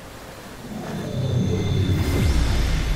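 A magical barrier hums and rumbles deeply.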